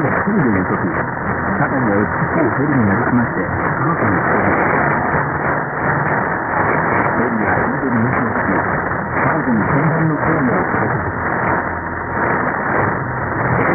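Shortwave radio static hisses and crackles steadily through a receiver.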